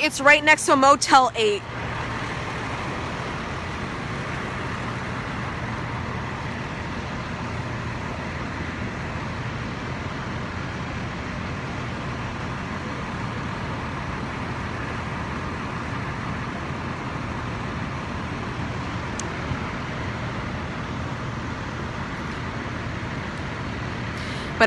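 Fire truck engines rumble steadily nearby.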